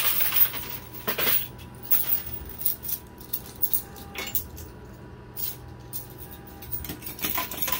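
Coins clink and rattle.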